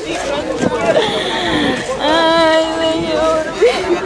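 A young woman sobs and speaks into a phone.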